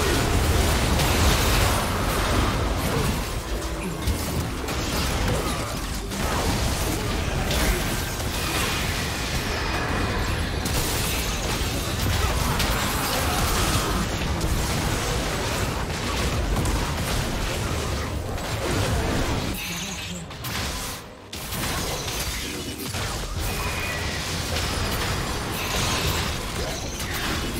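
Game spell effects whoosh and crackle in fast bursts.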